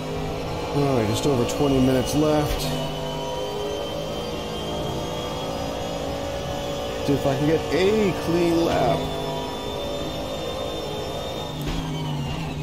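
A racing car engine roars loudly, climbing in pitch through quick gear changes.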